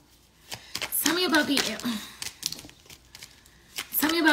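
A young woman talks close by in a casual, lively way.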